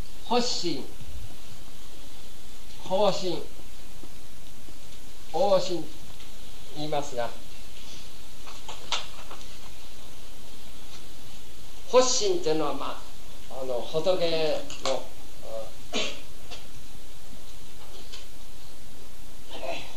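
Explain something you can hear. A man speaks calmly in short phrases with pauses, outdoors.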